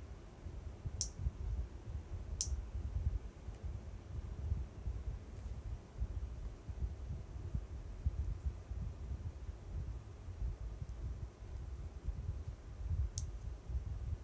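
Small hard pieces click sharply between fingers.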